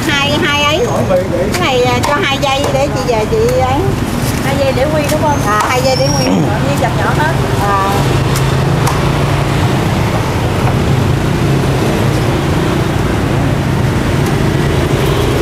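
A cleaver chops through meat onto a wooden block with sharp knocks.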